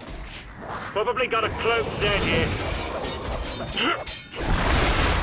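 Monsters shriek and growl up close.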